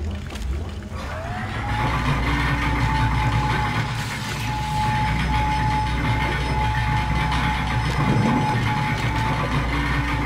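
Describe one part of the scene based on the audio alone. A cargo lift's motor starts with a rising whine and then hums steadily.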